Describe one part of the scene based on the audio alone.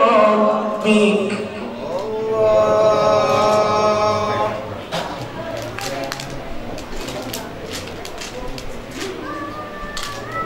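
A man chants in a long, drawn-out melody through a microphone, heard in an echoing room.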